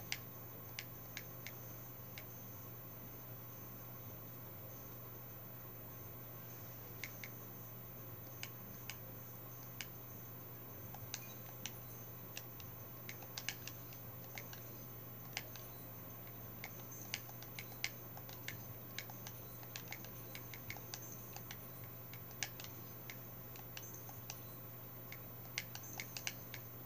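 Short menu clicks and ticks come from a television speaker.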